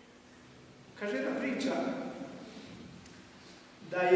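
An elderly man speaks slowly and solemnly into a microphone in a large echoing hall.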